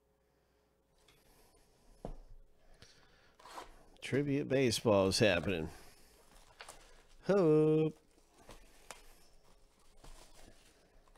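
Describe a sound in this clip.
Plastic wrapping crinkles and rustles as a box is handled.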